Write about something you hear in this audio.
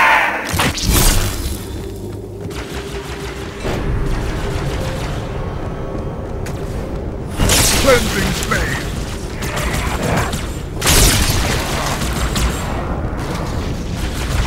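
An energy sword swings with a sharp hum and slash.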